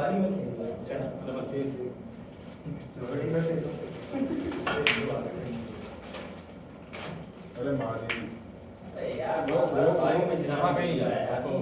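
Men talk nearby in casual voices.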